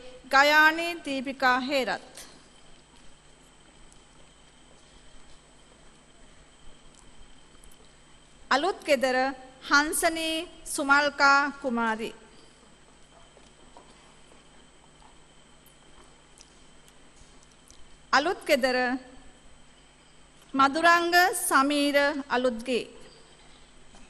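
A woman reads out names through a loudspeaker in a large echoing hall.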